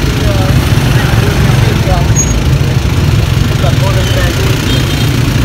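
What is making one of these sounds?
A motor scooter engine idles close by.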